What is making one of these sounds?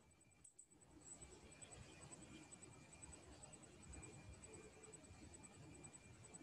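A man speaks quietly over an online call.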